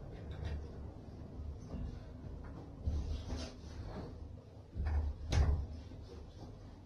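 A towel rubs briskly against a body, close by.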